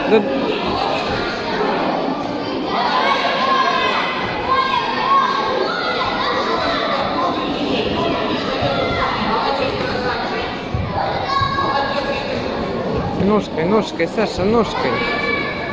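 Bare feet thud and shuffle on a mat.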